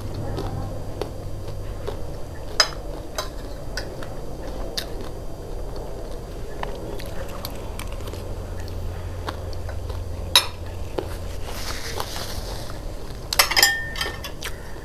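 A metal spoon clinks against a ceramic plate.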